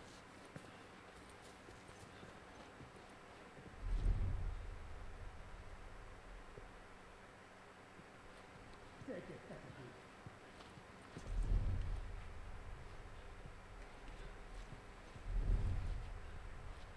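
Quiet footsteps creak softly on a wooden floor.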